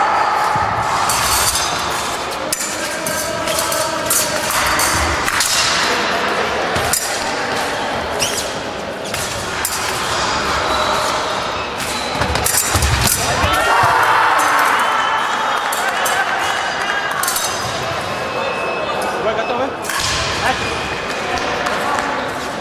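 Fencers' shoes stamp and squeak on a floor in a large echoing hall.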